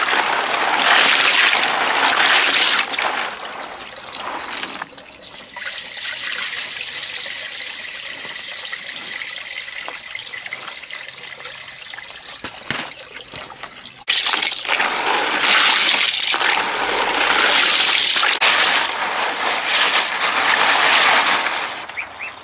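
Hands swish and splash in a basin of water.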